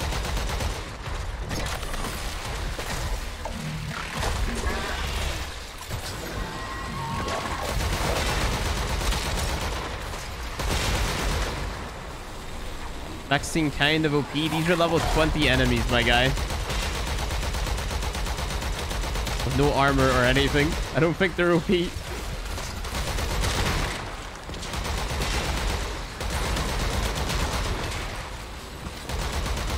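Energy blasts crackle and boom in rapid bursts.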